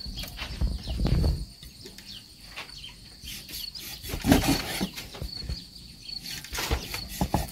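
A cleaver chops through raw meat onto a wooden block with dull thuds.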